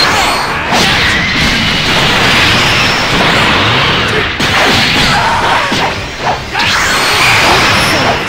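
Punches and impacts thud in quick bursts.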